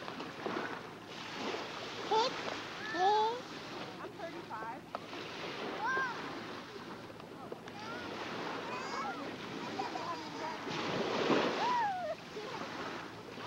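A young girl's high voice chatters close by.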